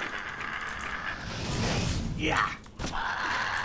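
A fire spell roars in a burst of flame.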